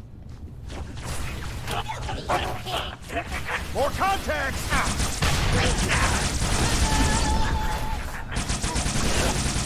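A futuristic energy pistol fires in rapid bursts.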